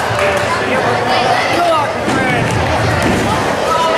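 A wrestler's body thuds onto the floor.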